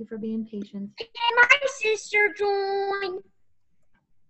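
A young child speaks excitedly over an online call.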